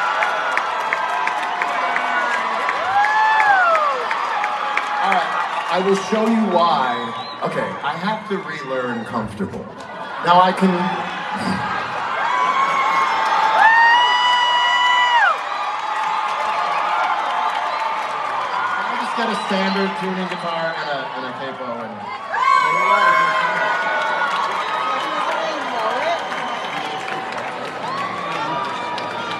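A man sings through loudspeakers in a large echoing arena.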